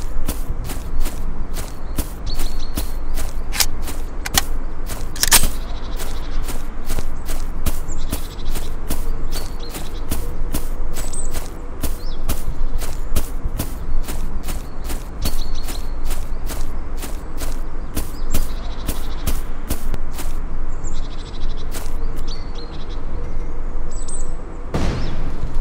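Footsteps thud steadily on grass.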